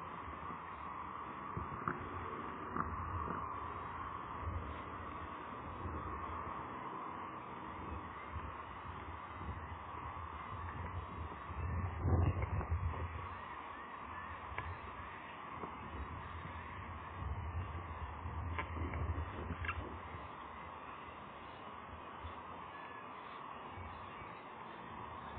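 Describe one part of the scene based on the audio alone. Wind buffets the microphone outdoors in gusts.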